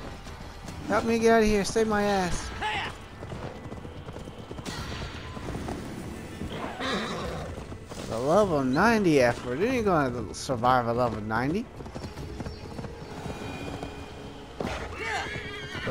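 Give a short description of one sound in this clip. A horse's hooves thud at a gallop.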